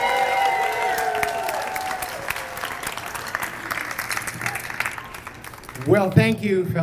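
A crowd claps.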